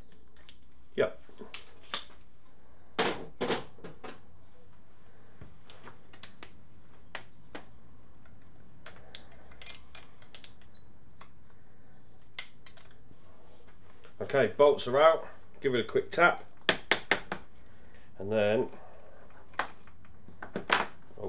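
Metal tools clink and tap against an engine.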